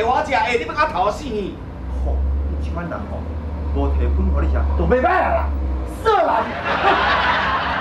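A middle-aged man answers in surprise.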